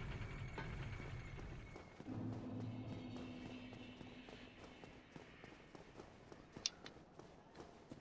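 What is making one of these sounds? Armoured footsteps clatter quickly on stone.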